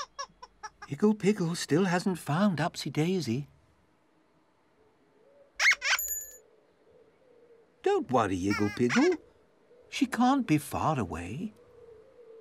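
A man's voice babbles and sings playfully up close.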